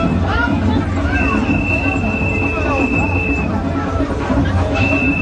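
A crowd of onlookers cheers and chatters loudly outdoors.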